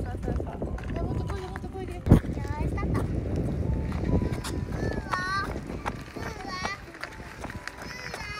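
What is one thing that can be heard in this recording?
Bicycle tyres roll over asphalt.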